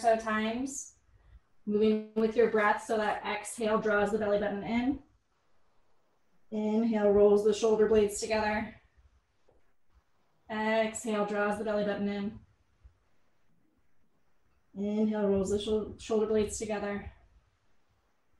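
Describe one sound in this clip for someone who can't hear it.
A woman speaks calmly in short phrases, heard through an online call.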